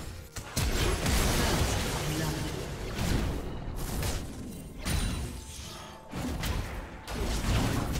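Magic spells and weapons clash in a noisy fantasy battle.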